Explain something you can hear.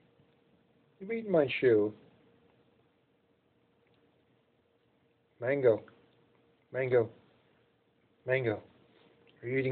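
A small puppy gives short, whiny growling yelps in bursts.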